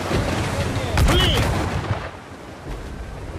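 Cannons fire with loud booming blasts.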